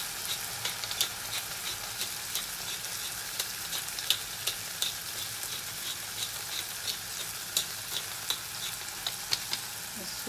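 A wooden pepper mill grinds with rapid clicks.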